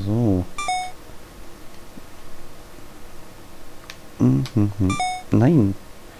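Short electronic beeps chime.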